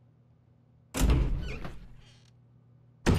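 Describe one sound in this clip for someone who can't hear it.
A heavy metal door creaks open.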